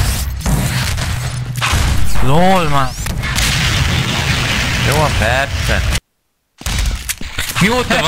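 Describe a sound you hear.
A gun fires repeated shots.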